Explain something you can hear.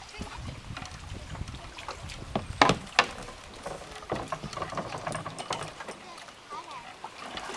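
Water laps and sloshes against a kayak.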